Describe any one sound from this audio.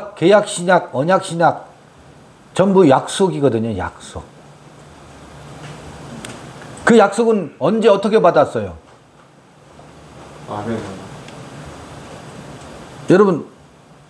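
An older man speaks calmly and clearly into a nearby microphone, in short phrases with pauses.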